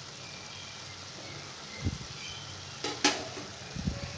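A metal spoon scrapes and knocks against a pan.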